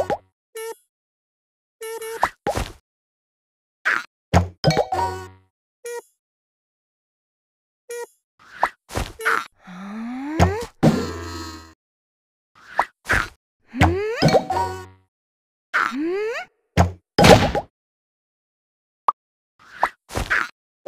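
Game bubbles pop with short bright chimes.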